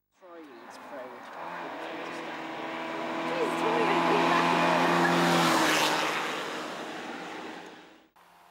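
A rally car engine revs hard as the car approaches and speeds past close by.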